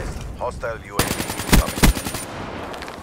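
A rifle fires a short burst of gunshots.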